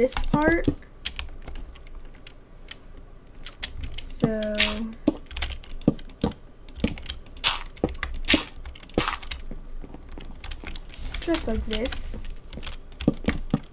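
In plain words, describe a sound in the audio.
Blocks knock softly as they are placed and broken.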